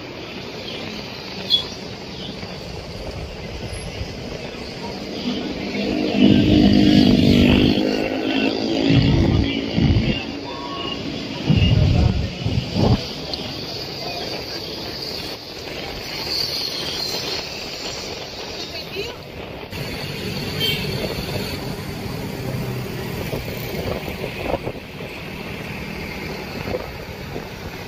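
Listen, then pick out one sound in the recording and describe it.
Traffic passes steadily on a street outdoors.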